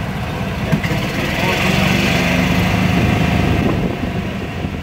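A van's engine rumbles as it passes close by.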